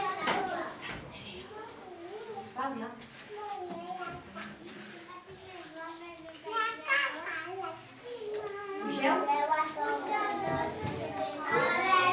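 A group of young children sings together in an echoing hall.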